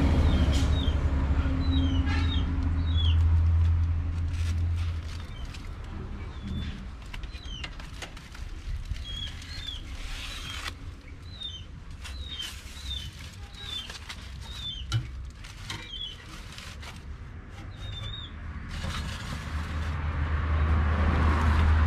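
Metal tongs clink against an oven rack.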